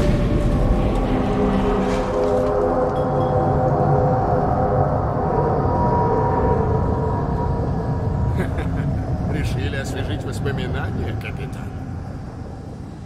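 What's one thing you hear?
A furnace fire roars loudly with a deep rumble.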